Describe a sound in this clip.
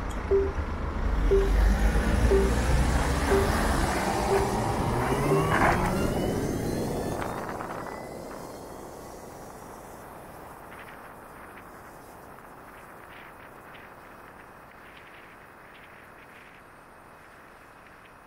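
A motorcycle pulls away from a stop and rides along a street.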